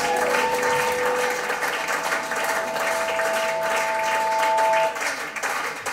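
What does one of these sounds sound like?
A rock band plays loudly with guitars and drums.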